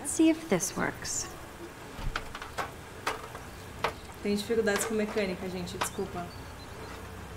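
A young woman talks casually into a nearby microphone.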